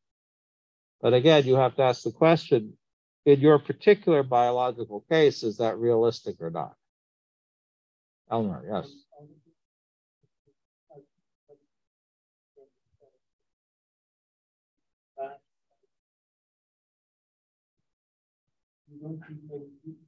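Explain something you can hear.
A man speaks calmly through an online call, pausing now and then.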